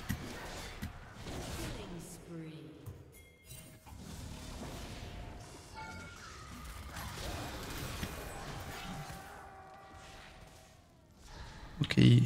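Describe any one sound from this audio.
Electronic game effects zap, clash and chime.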